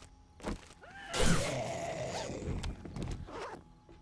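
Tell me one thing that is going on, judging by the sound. A torch flame roars and crackles briefly.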